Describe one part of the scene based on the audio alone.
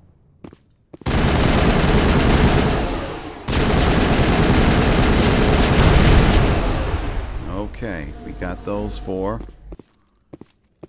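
Gunfire rattles loudly and rapidly.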